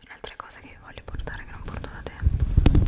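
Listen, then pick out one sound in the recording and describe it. Fingers rub a furry microphone cover, making deep rustling.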